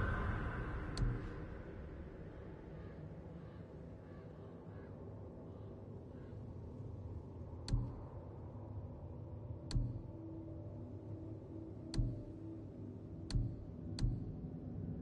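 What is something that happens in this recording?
A soft interface click sounds each time a menu page changes.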